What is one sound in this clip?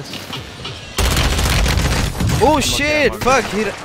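Gunshots fire in rapid bursts at close range.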